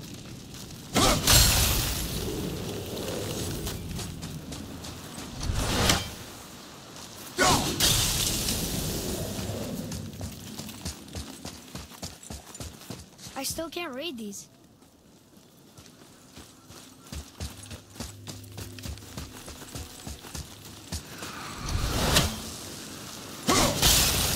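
An axe swings with a loud whoosh.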